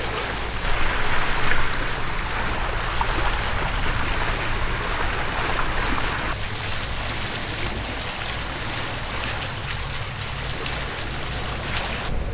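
Water rushes and splashes against a moving boat's hull.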